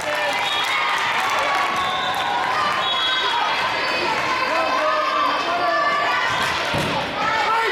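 Young women and spectators chatter and call out in a large echoing hall.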